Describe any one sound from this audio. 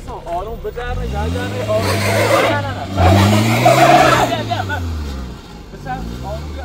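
A car engine revs hard, rising and falling.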